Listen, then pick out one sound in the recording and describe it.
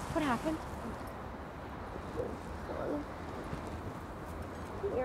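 A young boy speaks quietly nearby.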